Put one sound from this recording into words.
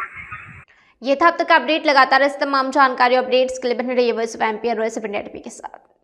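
A young woman speaks calmly and clearly into a microphone, close by.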